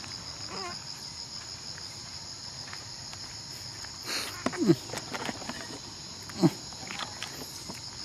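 Fabric rustles as hands handle the monkey.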